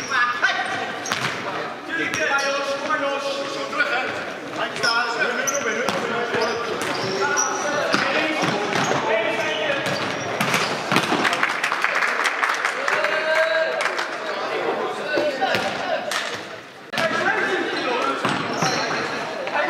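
A ball is kicked hard on a hard floor in a large echoing hall.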